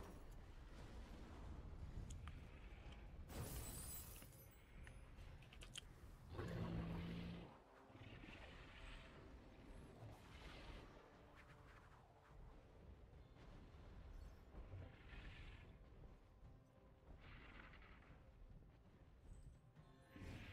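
Video game sound effects whoosh and crackle.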